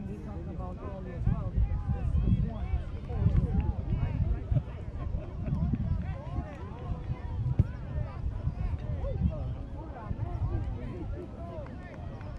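Several adults and children chatter and call out nearby outdoors.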